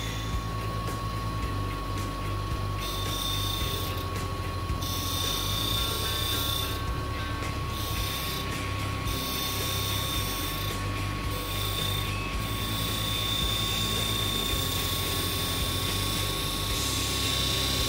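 A gouge scrapes and hisses against spinning wood.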